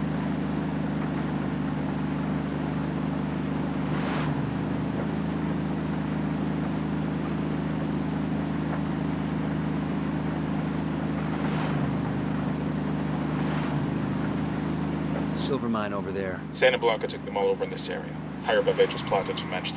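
A car engine drones steadily on a road.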